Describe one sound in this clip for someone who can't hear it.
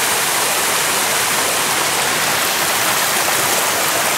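A small waterfall splashes onto rocks nearby.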